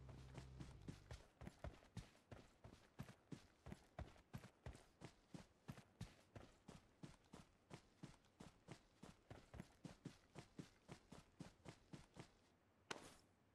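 Quick footsteps thud steadily on grass.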